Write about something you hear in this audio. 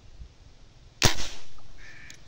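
A fishing rod knocks sharply as it is set down on the bank.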